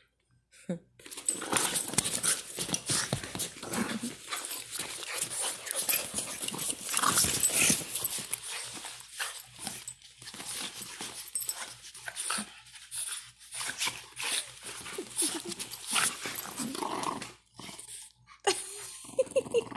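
A French bulldog growls and snorts playfully.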